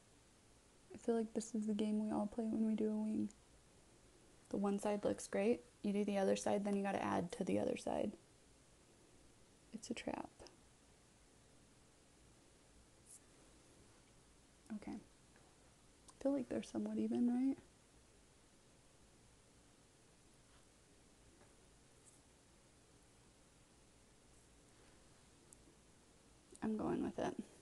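A young woman speaks calmly and close up, in short bursts.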